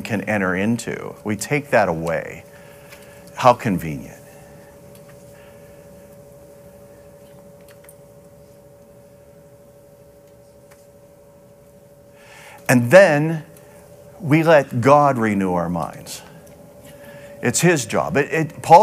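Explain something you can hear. A middle-aged man speaks with animation through a microphone, pausing between phrases.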